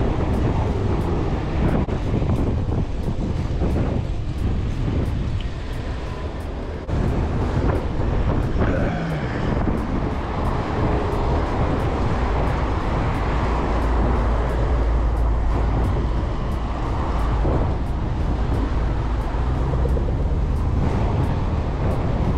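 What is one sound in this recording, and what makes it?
Car engines hum in passing traffic nearby.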